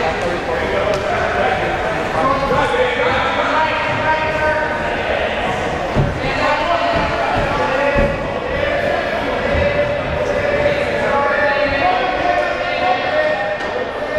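Many voices shout and cheer in a large echoing hall.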